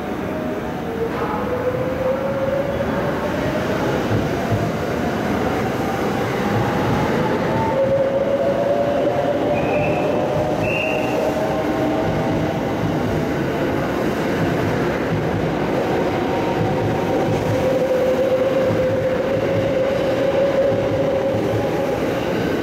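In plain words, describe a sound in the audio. A train's brakes squeal with a rising whine.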